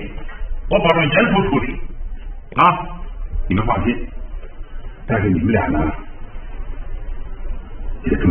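An older man speaks firmly and close by.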